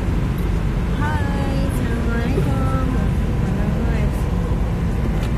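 A young woman talks casually close to a phone microphone.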